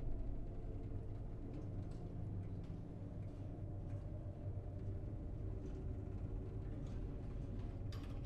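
An elevator hums low and steadily as it moves.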